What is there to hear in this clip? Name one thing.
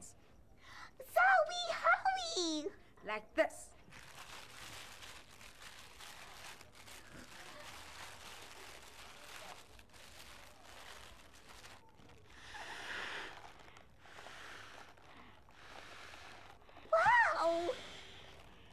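A teenage girl speaks excitedly and close by.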